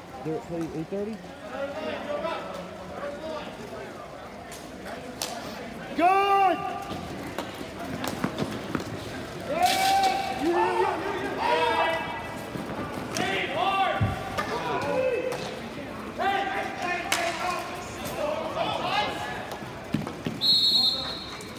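Skate wheels roll across a hard rink floor.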